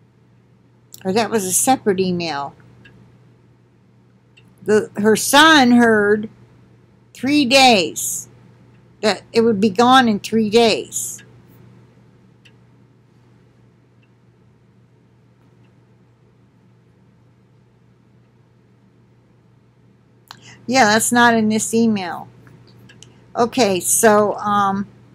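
An elderly woman speaks calmly and close up, in short bursts with pauses.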